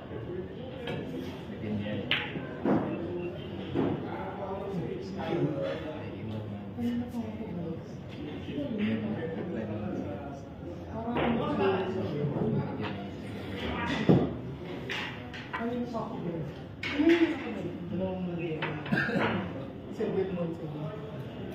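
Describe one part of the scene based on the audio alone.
Men chat casually nearby.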